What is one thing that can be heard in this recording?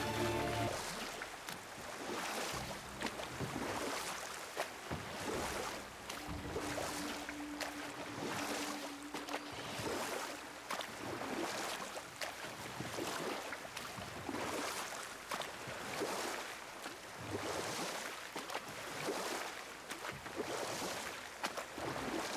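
Oars splash rhythmically in water as a boat is rowed.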